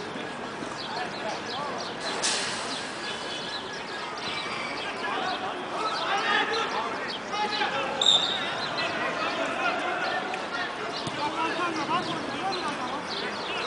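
Men shout and call out across an outdoor pitch.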